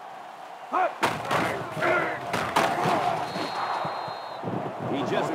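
Football players thump together in a tackle.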